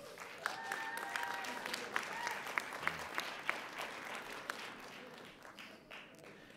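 An audience claps in a large echoing hall.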